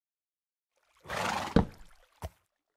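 A wooden block thumps down as it is placed.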